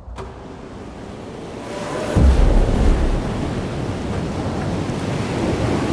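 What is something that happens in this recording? Waves splash and rush against a moving boat.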